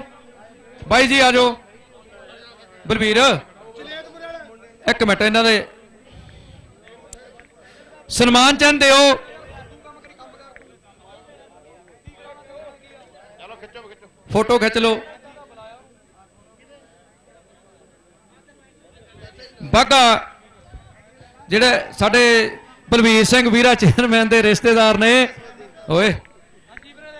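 A man speaks loudly over a loudspeaker in short bursts, outdoors.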